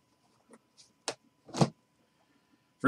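A hard plastic card case clicks as it is handled.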